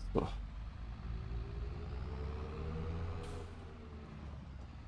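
A diesel tractor engine rumbles.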